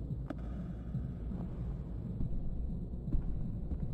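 Footsteps thud across a carpeted floor.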